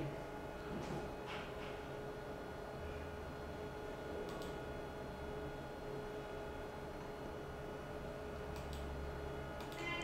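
A man speaks quietly into a close microphone.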